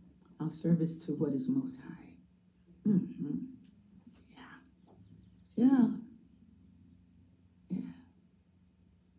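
An elderly woman speaks calmly into a microphone at close range.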